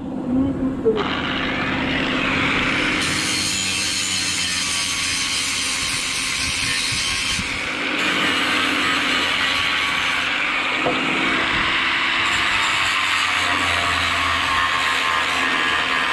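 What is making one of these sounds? An angle grinder whines steadily as it grinds against metal.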